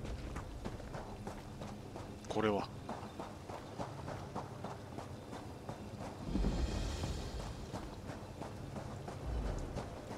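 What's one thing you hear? Footsteps run across sand.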